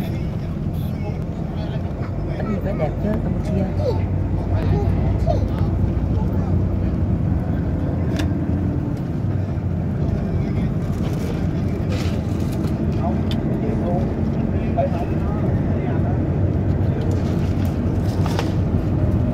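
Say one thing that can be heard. A vehicle engine rumbles steadily while driving.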